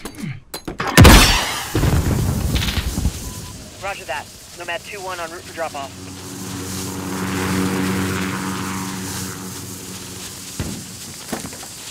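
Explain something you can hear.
A smoke grenade bursts and hisses loudly.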